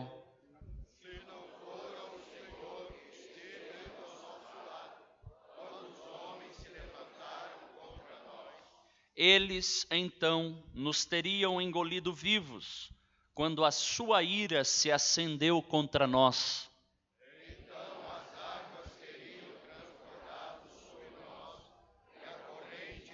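A group of men read aloud together quietly in the background.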